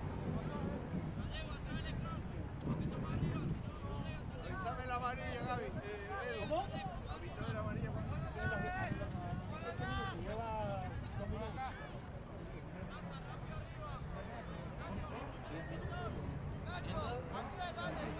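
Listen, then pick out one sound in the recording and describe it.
Young players shout and call to each other across an open field.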